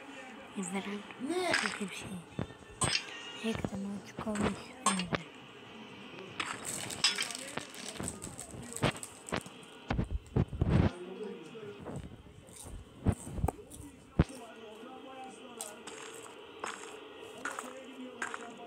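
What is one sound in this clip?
Stone blocks crack and crumble in short bursts as they are dug out.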